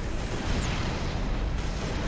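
An electric charge crackles and buzzes.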